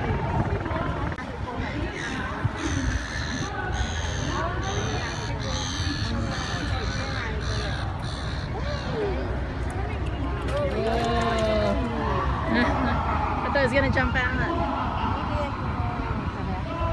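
Water laps gently against a wooden dock.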